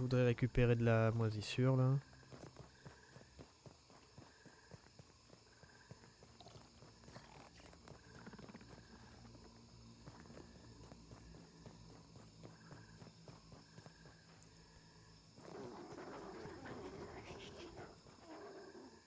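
Footsteps patter quickly and steadily on a hard surface.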